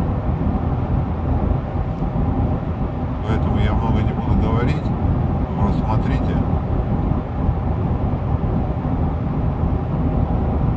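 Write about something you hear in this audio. A car engine hums steadily with road noise at highway speed.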